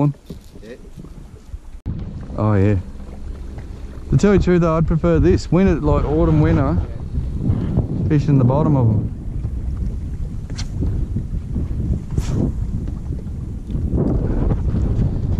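Wind blows across open water.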